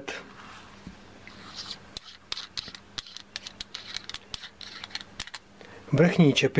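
Small metal parts click and scrape as they are screwed together.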